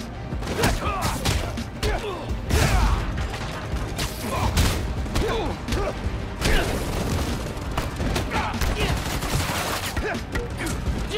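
Punches and kicks land with heavy thuds and whooshes.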